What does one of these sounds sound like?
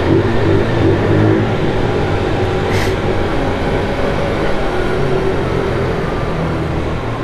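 A motorcycle engine hums steadily as it rides slowly, echoing in a large concrete space.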